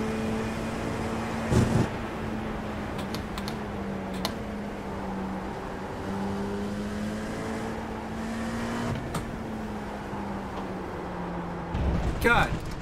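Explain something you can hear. A race car engine drones steadily, rising and falling in pitch.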